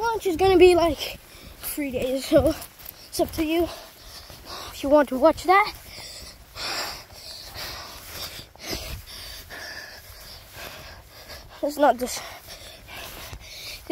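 Footsteps run and swish through tall grass.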